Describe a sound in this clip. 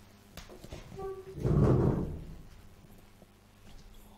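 A chair creaks and thumps as a man stands up.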